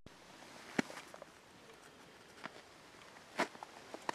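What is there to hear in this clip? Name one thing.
Snow crunches underfoot nearby.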